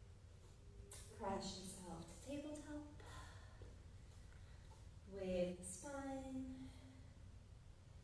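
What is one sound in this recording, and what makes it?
A woman speaks calmly and close by, in short phrases.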